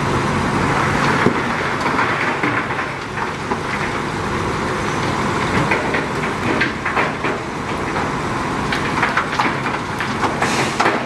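Rocks scrape and clatter under a bulldozer blade.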